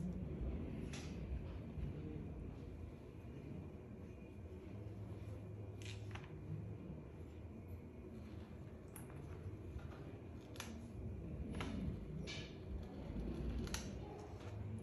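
A hair straightener clicks as it is clamped and released.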